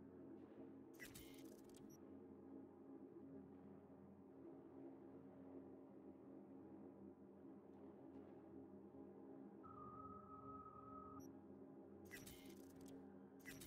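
Short electronic interface sounds chime as menu panels pop open.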